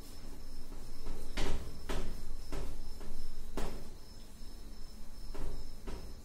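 A cloth rubs and wipes across a whiteboard.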